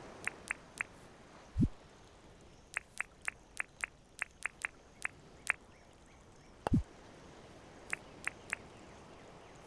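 Short interface clicks tick in quick succession.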